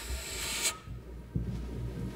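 A jazz ensemble plays together on stage.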